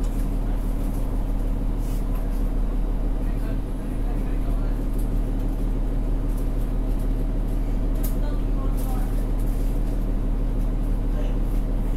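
The bus cabin rattles softly with small knocks.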